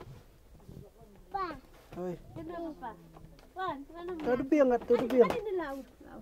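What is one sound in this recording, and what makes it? A woman talks warmly to a small child close by.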